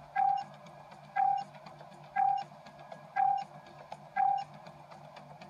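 A countdown beeps once each second, in short even tones.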